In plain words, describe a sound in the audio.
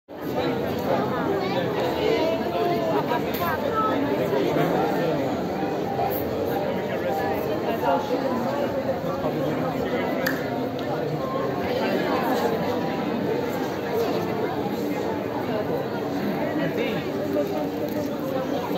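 Children laugh and call out excitedly.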